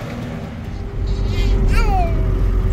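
A pickup truck drives along a road.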